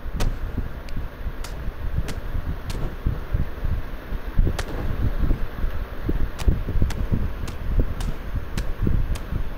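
Blows land with dull thuds as two wrestlers trade strikes.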